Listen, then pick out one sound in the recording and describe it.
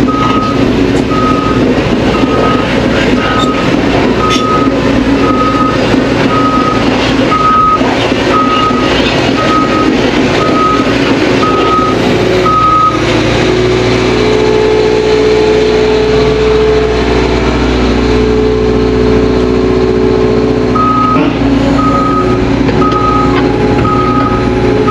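A warning alarm beeps at a steady, even pace.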